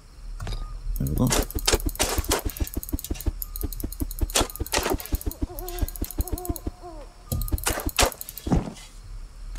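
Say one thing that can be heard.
A shovel digs into soil with repeated scraping crunches.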